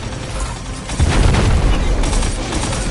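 Heavy explosions rumble.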